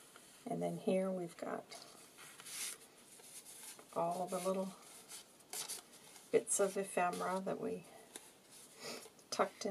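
Paper cards rustle and slide against each other.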